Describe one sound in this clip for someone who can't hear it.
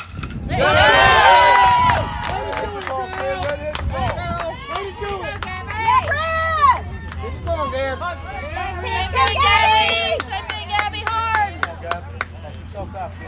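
Young women shout and cheer loudly outdoors.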